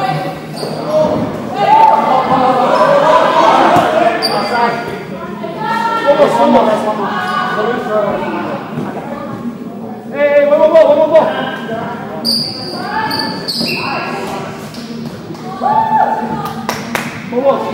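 Young girls call out and shout in a large echoing hall.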